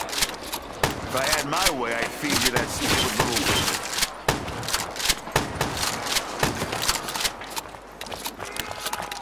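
Guns fire in quick, sharp bursts.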